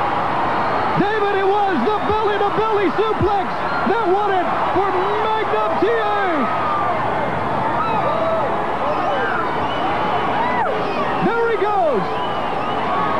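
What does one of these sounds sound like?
Fans close by shout and yell excitedly.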